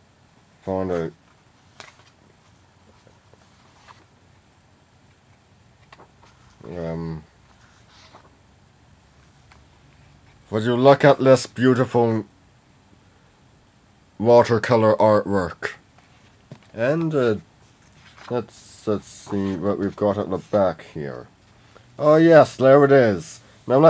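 A young man talks close by, calmly, in short bursts.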